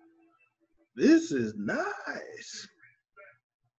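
A second man speaks over an online call.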